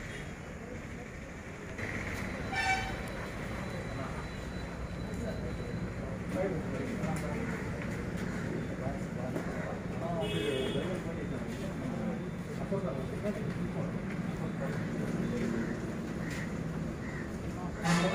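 A crowd of men murmurs and talks nearby, outdoors.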